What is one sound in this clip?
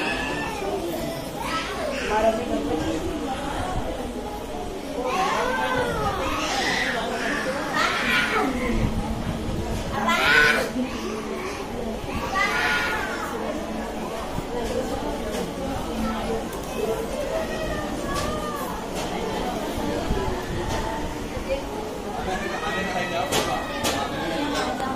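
Many women murmur and chatter nearby in an echoing hall.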